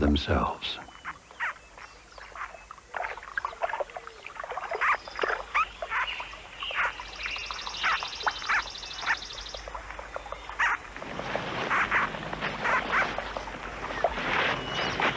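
Small monkeys chirp and squeak in high, short calls.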